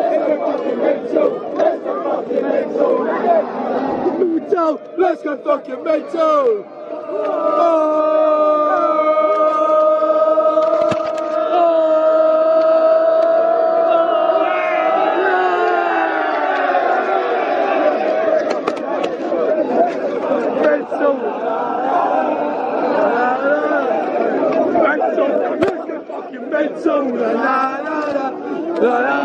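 Young men shout and cheer with excitement close by.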